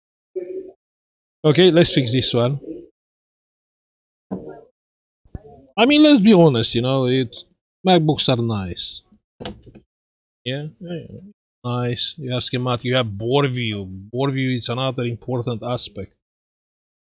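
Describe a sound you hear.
An older man talks calmly and close to a microphone.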